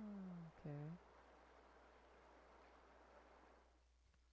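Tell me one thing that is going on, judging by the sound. Water drains away with a soft, steady rush.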